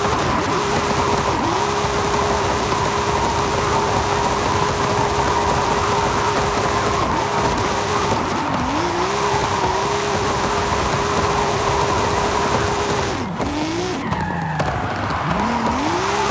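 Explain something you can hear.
A car engine roars at high revs as the car drifts.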